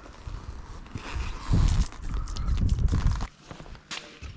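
Liquid splashes onto paving stones.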